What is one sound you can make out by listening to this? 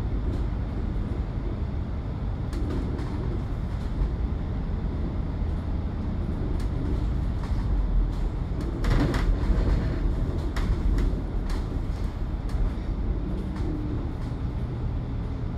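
An engine rumbles steadily as a bus drives along.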